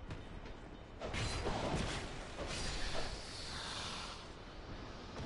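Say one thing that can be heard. A sword swings and strikes with sharp metallic hits.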